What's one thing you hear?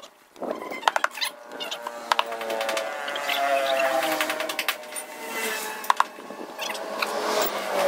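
Metal tools clink against a steel wheel rim.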